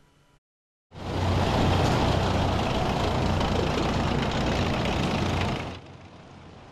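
Armoured vehicle engines rumble loudly as the vehicles roll past.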